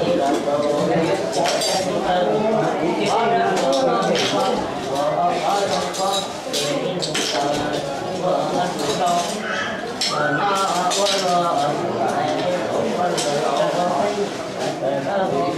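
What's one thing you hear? Men talk loudly over one another close by.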